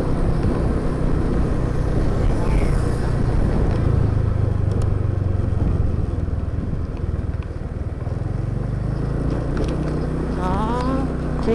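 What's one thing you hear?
A motorbike engine hums steadily up close.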